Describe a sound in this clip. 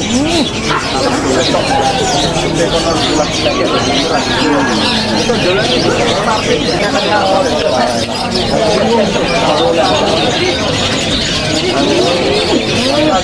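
Caged birds chirp and whistle busily and without pause.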